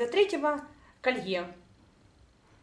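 A woman speaks close by, brightly and with animation.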